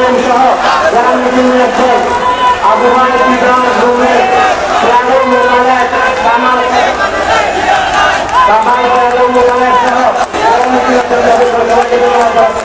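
A large crowd of men chants loudly together outdoors.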